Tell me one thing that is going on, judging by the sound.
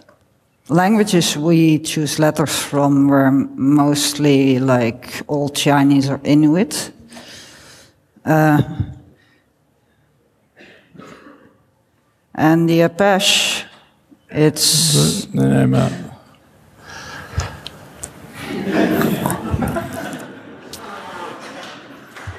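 An elderly woman speaks into a microphone in a large hall, her voice carried over loudspeakers.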